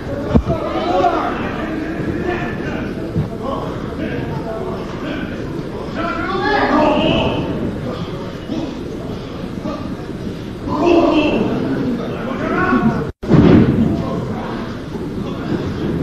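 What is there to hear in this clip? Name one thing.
Wrestlers' bodies thud against the ring mat.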